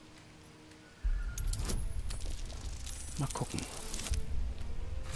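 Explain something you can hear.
A die rattles as it rolls and clatters to a stop.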